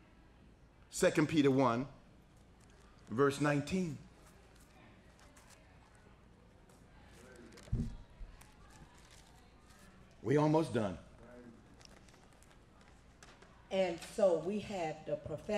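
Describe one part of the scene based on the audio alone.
A middle-aged man speaks calmly and haltingly into a close microphone, with long pauses.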